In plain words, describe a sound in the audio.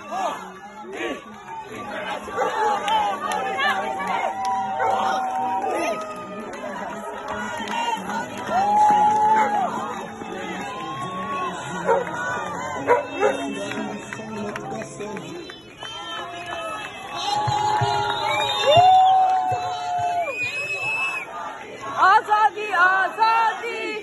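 A crowd of men and women shout and chant loudly outdoors.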